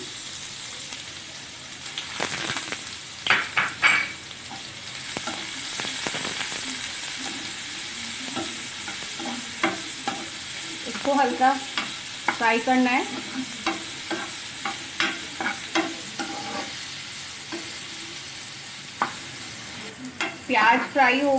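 Onions sizzle steadily in hot oil in a pan.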